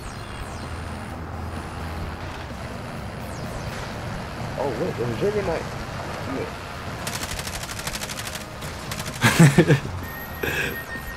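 A truck engine rumbles steadily as the truck drives over rough ground.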